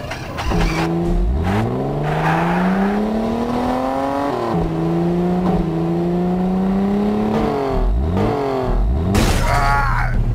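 Tyres rumble over a road.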